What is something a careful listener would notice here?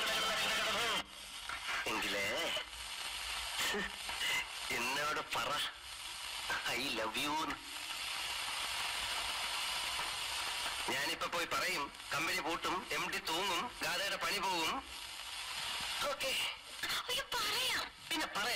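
A young man and a young woman speak with animation through a microphone, heard over a loudspeaker.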